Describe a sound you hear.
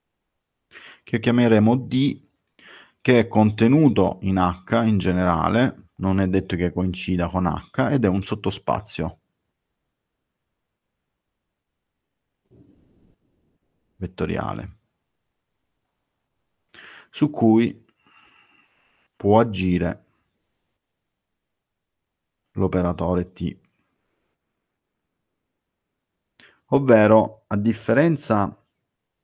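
A man speaks calmly in bursts through an online call microphone.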